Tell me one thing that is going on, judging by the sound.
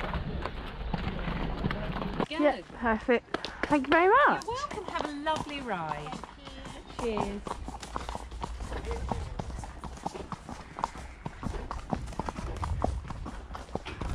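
Horse hooves crunch on gravel.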